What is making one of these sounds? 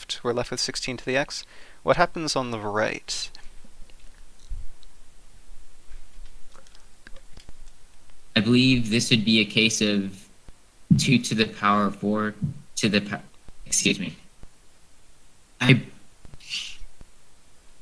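A young man talks calmly into a close microphone, pausing between phrases.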